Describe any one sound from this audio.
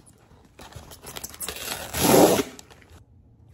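A blade slices through packing tape on a cardboard box.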